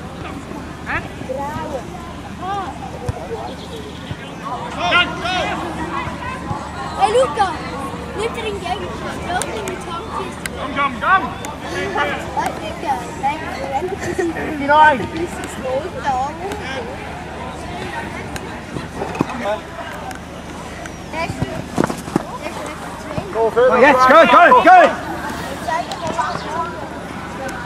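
Men shout to each other outdoors during a football game.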